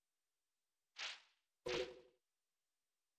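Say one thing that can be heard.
A menu selection chimes with short clicks.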